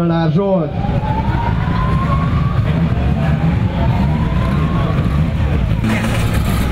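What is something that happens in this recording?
A rally car engine revs up in rising bursts.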